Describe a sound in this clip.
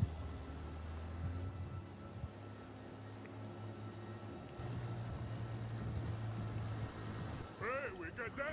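A motorboat engine drones across the water.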